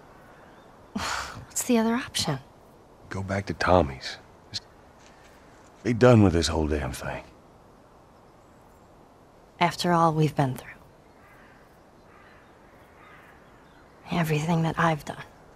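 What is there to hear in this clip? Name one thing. A young girl speaks softly and questioningly.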